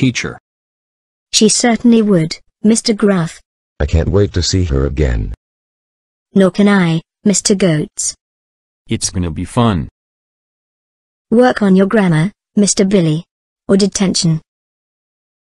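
A woman reads aloud clearly through a microphone, in short phrases with pauses.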